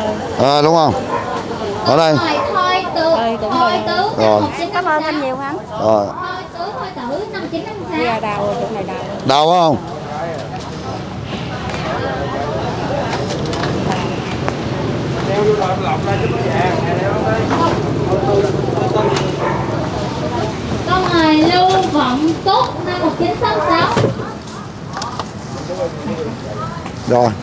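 A crowd of people chatter in the background outdoors.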